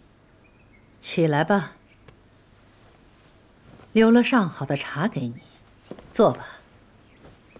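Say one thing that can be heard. A middle-aged woman speaks calmly.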